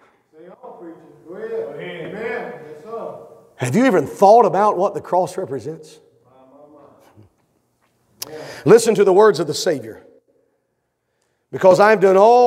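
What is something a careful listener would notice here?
A man speaks at a lectern through a microphone in a large room, pausing between phrases.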